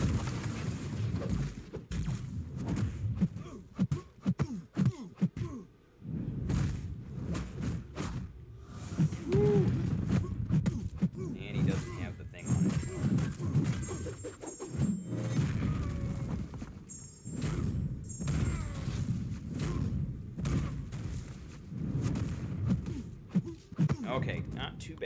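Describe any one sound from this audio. Punches and kicks land with heavy thuds and whooshes.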